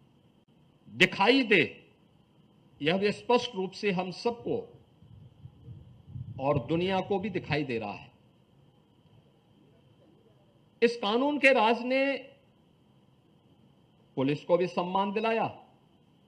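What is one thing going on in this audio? A man speaks forcefully into a microphone over loudspeakers, in short bursts with pauses.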